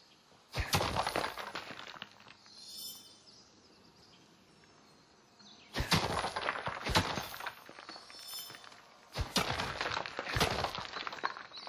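A pickaxe strikes rock with loud cracking blows.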